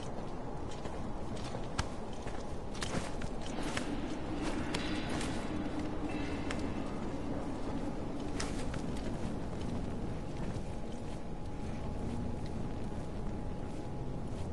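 Footsteps patter on stone as a figure runs.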